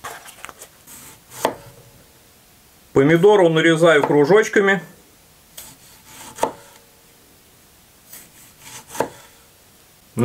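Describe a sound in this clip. A knife slices through a tomato and taps a wooden board.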